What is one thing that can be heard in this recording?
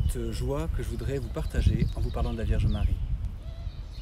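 A middle-aged man speaks warmly and calmly close to a microphone.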